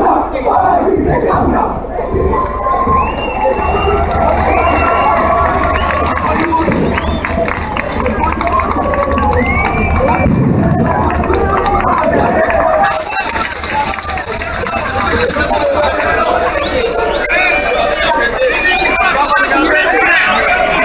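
A large crowd chants and shouts loudly outdoors.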